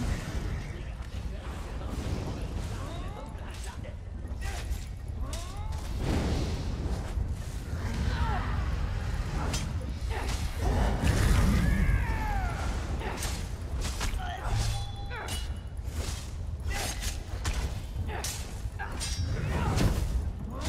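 A dragon roars and growls loudly.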